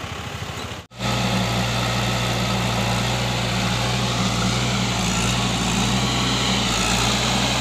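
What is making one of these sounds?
A digger's engine rumbles steadily nearby.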